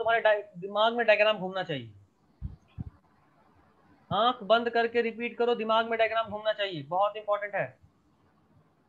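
A young man speaks calmly into a microphone over an online call.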